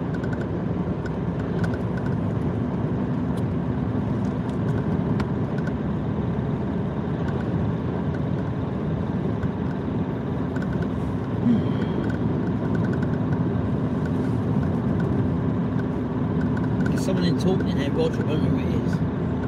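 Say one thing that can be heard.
Oncoming cars whoosh past now and then.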